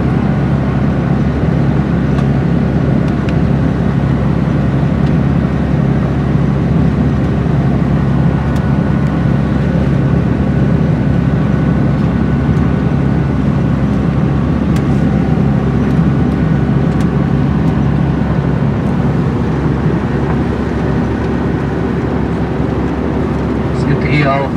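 A bus engine drones steadily while driving over rough ground.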